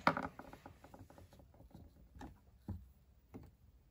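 A plastic doll knocks and taps lightly as it is handled.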